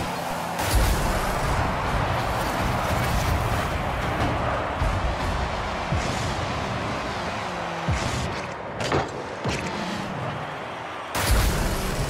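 A video game crowd roars and cheers steadily.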